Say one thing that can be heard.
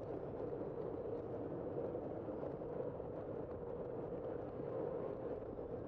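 Wind rushes steadily past a moving bicycle, outdoors.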